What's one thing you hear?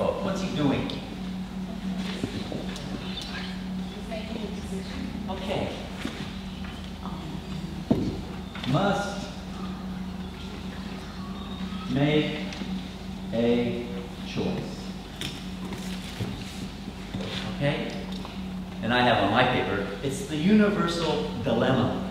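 A middle-aged man speaks calmly to a group in a large echoing hall.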